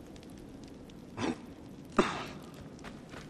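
A body lands with a heavy thud.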